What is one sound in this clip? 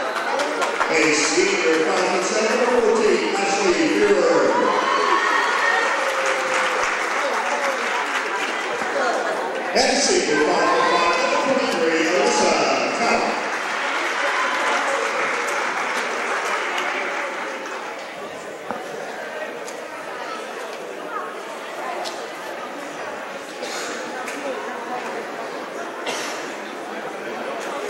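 A crowd cheers and applauds in a large echoing gym.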